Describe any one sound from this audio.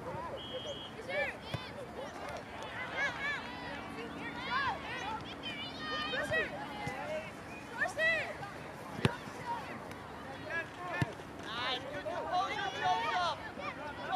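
Youth soccer players shout to one another across an open field.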